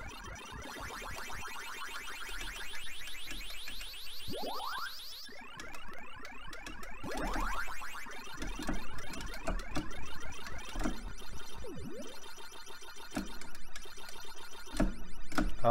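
A Ms. Pac-Man arcade game makes rapid munching blips.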